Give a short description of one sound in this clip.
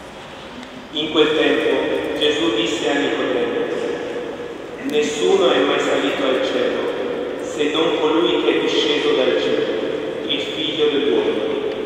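A man reads aloud in a steady voice through a microphone in an echoing hall.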